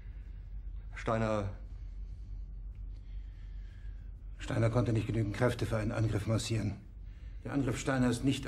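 A man speaks in a low, grave voice close by.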